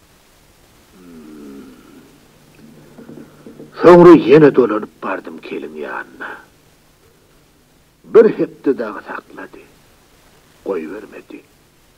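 An elderly man sings loudly with a wavering voice.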